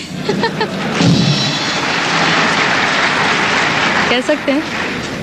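A large audience applauds and cheers.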